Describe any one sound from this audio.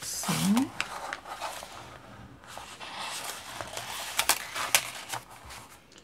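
Paper taps and clicks softly against paper.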